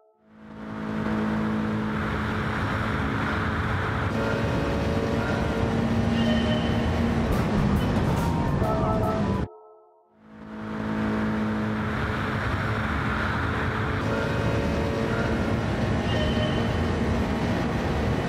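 A race car engine roars steadily at high speed.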